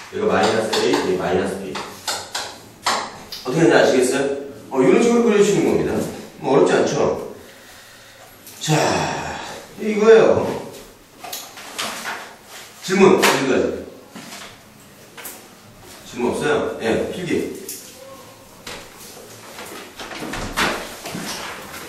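A young man lectures with animation through a microphone.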